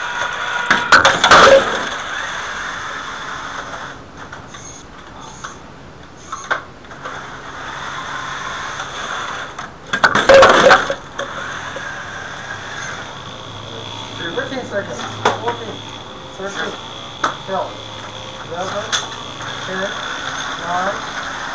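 A small robot's motors whir as it drives across a floor.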